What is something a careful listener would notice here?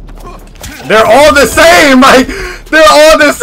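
A young man shouts excitedly.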